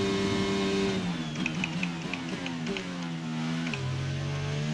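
A racing car engine drops in pitch as the car slows into a corner.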